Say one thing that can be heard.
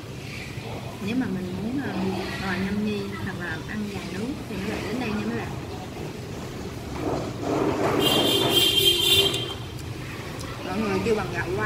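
A young woman talks casually and close by, between bites.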